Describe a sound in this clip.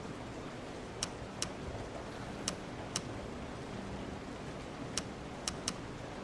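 Short, sharp menu clicks tick now and then.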